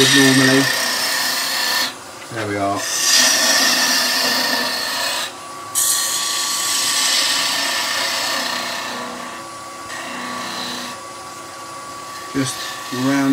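A chisel scrapes and hisses against spinning wood.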